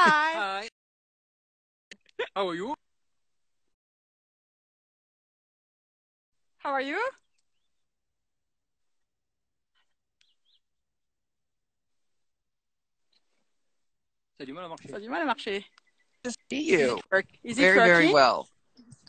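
A middle-aged man talks cheerfully over an online call.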